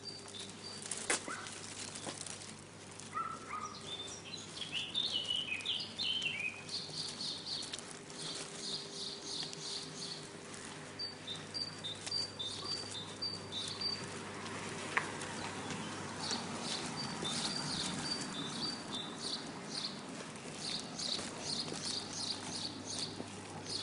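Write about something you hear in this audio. A small dog's claws tap on hard pavement as it walks.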